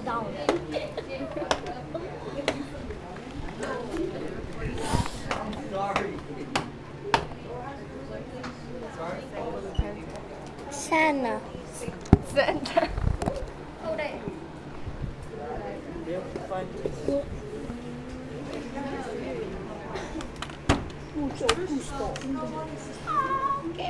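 Many teenagers chatter and talk at once close by, in a room.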